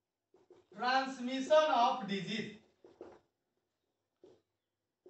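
A man speaks clearly, explaining as he lectures.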